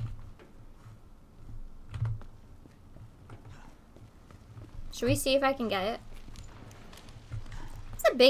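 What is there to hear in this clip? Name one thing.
Footsteps thud softly on a hard floor.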